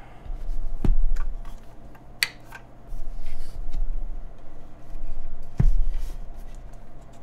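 A keyboard case knocks and slides on a desk.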